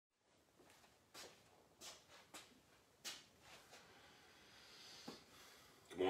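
Footsteps thud and scuff on a hard floor.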